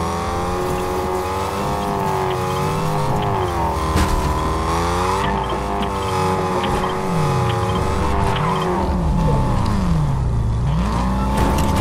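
A car engine hums and revs up and down as it drives.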